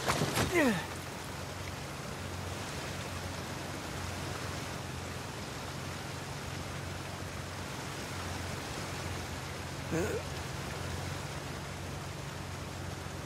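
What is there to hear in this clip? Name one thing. Rushing water roars steadily close by.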